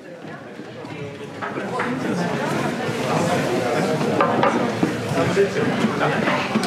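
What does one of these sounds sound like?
A crowd of people chatters in an echoing room.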